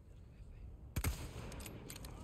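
A rifle shot cracks sharply once.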